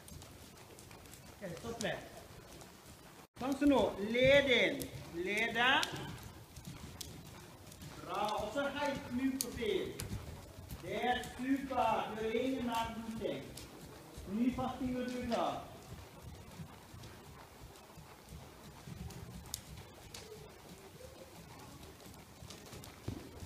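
Hooves thud softly on sand as a horse trots.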